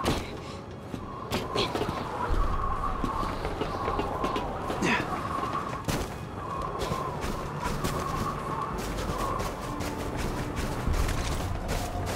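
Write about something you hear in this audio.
Heavy footsteps run across a metal walkway.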